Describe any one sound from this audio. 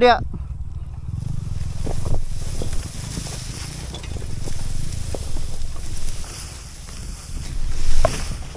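Tall grass brushes and swishes against a motorbike.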